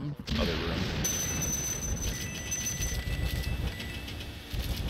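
Coins jingle and chime in a video game.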